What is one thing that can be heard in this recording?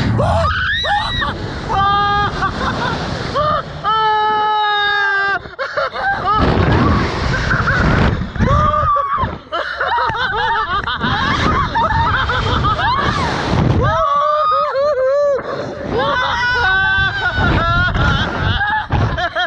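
Wind rushes past the microphone outdoors.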